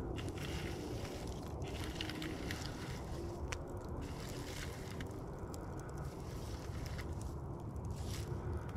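Glowing embers crackle and pop softly.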